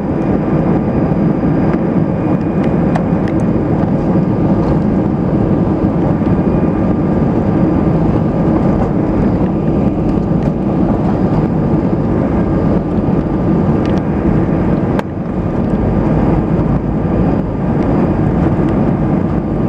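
A jet engine roars steadily inside an aircraft cabin as the plane taxis.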